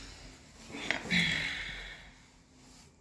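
Fabric rustles close by.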